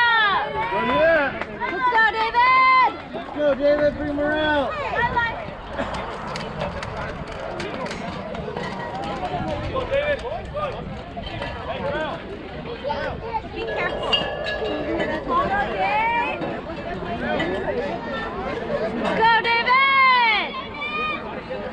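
Children shout and cheer loudly nearby.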